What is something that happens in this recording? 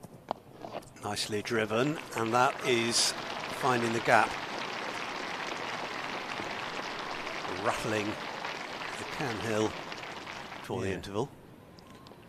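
A crowd applauds steadily outdoors.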